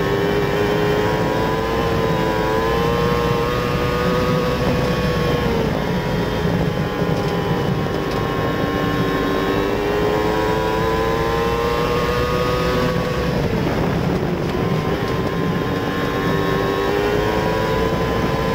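A race car engine roars loudly up close, rising and falling in pitch as it revs through the turns.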